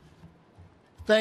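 An elderly man speaks into a microphone over loudspeakers.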